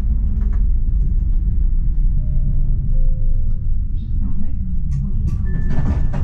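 A tram rumbles along rails and slows to a stop.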